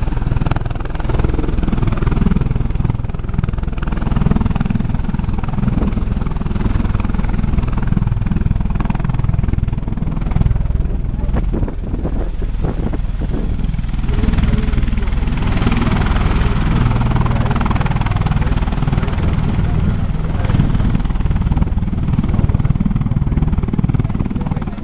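Large rotors thump and roar loudly as an aircraft lands and taxis outdoors.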